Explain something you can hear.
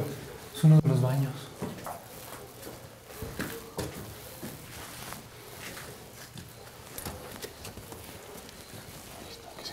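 Footsteps scuff on a stone floor.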